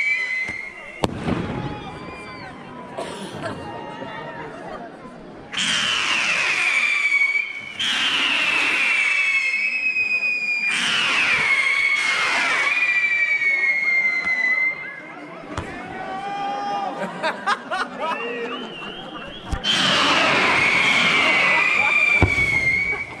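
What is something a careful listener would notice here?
Fireworks explode with sharp bangs.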